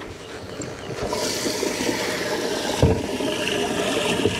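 A boat motor runs as the boat speeds over water.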